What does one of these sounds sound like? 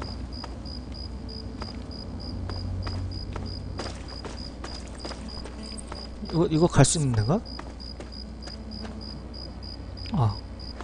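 Footsteps thud steadily over rubble and concrete.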